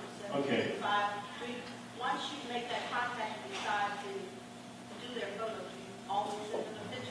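An older man speaks calmly through a microphone in an echoing hall.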